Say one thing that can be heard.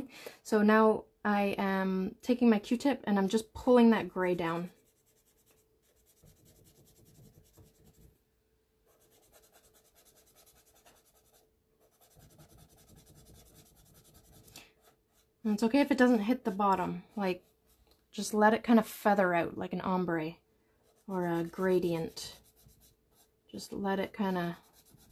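A cotton swab softly rubs across paper.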